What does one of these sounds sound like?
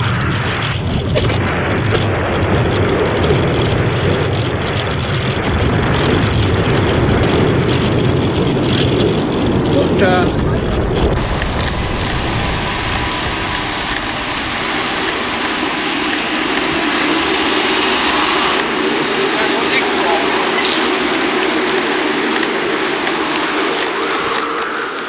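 Bicycle tyres roll steadily along a paved path.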